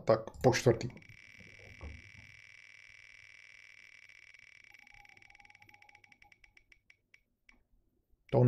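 A spinning prize wheel ticks rapidly, then slows and stops.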